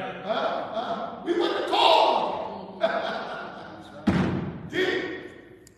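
A man speaks with animation through a microphone in a large echoing room.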